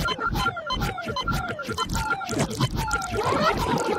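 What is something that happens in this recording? A man sings loudly.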